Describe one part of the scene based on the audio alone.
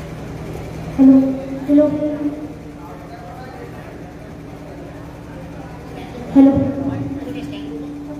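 A young boy speaks into a microphone through a loudspeaker.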